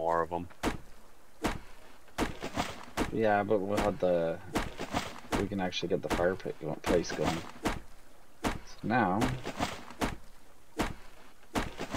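An axe repeatedly chops into a tree trunk with sharp thuds.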